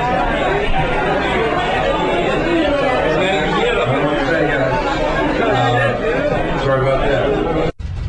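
A man shouts angrily through a microphone in a large room.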